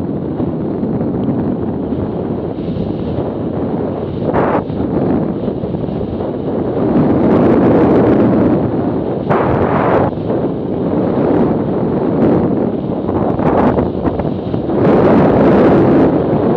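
Wind roars loudly and buffets against a microphone outdoors.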